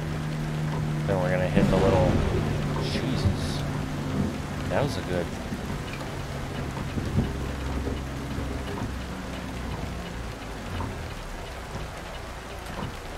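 Windshield wipers swish back and forth across the glass.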